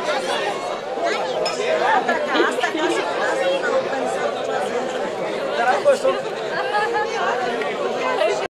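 A crowd of adults and children chatters nearby outdoors.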